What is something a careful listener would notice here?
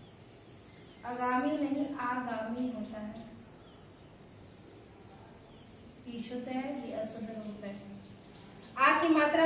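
A woman speaks clearly nearby, explaining.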